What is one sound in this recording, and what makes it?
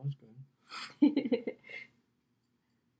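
A young woman laughs close by.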